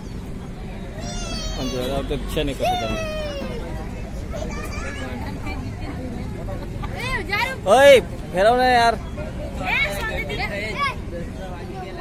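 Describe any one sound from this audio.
Young children squeal and shout excitedly nearby.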